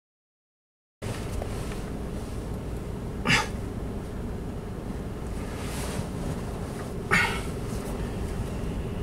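A car drives slowly across a parking lot.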